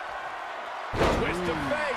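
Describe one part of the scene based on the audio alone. A wrestler slams onto a wrestling ring mat with a heavy thud.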